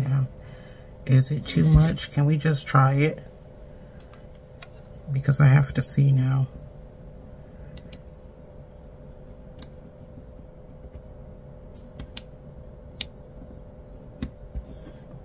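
Paper rustles and crinkles softly as a sticker is peeled.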